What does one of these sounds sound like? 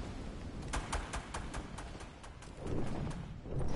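Wind rushes past a gliding game character.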